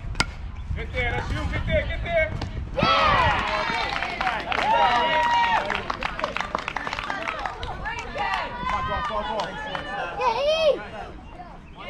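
Children shout and cheer excitedly nearby.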